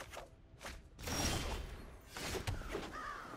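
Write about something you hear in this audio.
A chime sounds announcing a turn.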